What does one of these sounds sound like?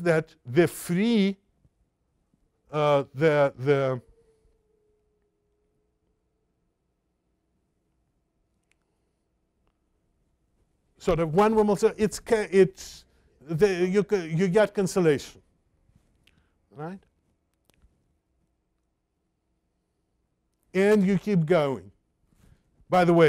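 An elderly man lectures calmly through a microphone, with long pauses between phrases.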